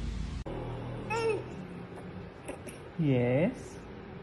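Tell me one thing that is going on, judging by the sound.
A baby squeals and laughs close by.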